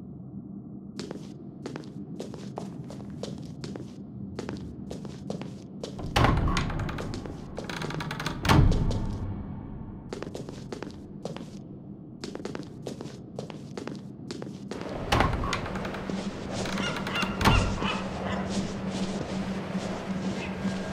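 Footsteps patter quickly on a hard stone floor.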